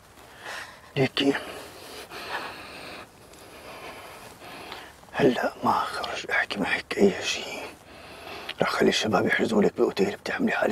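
A man speaks tensely and urgently, close by.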